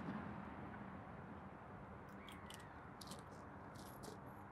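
Fishing tackle clicks and rattles as it is handled.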